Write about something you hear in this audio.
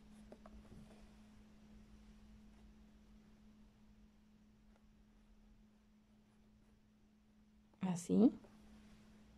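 Embroidery thread rasps softly as it is pulled through taut cloth.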